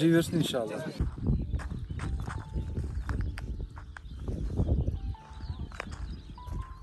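Footsteps crunch on dry dirt.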